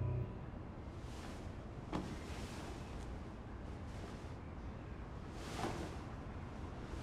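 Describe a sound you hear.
A young man breathes heavily close by.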